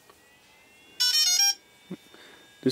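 A drone's remote controller gives a short electronic beep.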